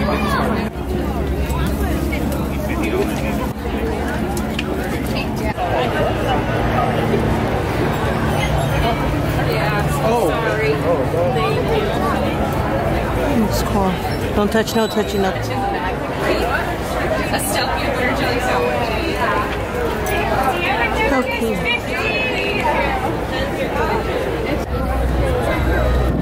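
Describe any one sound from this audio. Men and women chatter in a busy outdoor crowd nearby.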